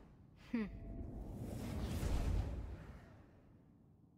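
A magical blast whooshes and rumbles.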